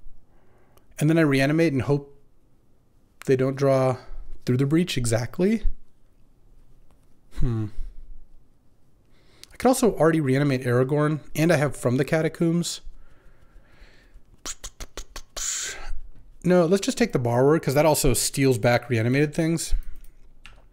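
A man talks calmly and with animation into a close microphone.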